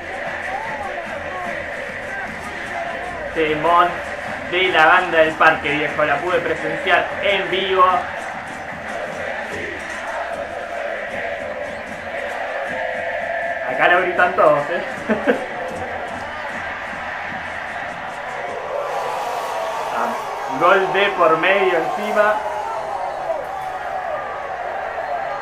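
A crowd in a large stadium chants and sings loudly throughout.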